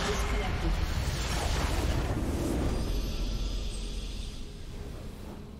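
A huge crystal structure explodes with a deep roaring blast that slowly fades.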